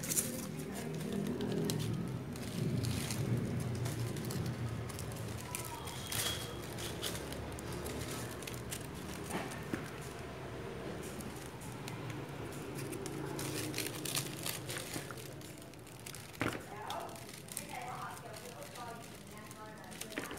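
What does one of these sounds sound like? Crepe paper leaves rustle and crinkle in hands.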